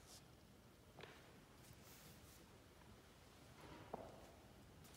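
A heavy book thumps softly onto a table.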